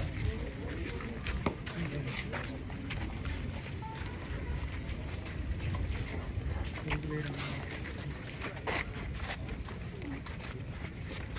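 A crowd of men talk and murmur nearby outdoors.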